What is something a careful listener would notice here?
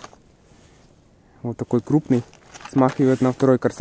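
Cardboard boxes rustle and tap as they are handled.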